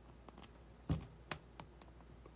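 Soft clicks come from handling a fishing lure.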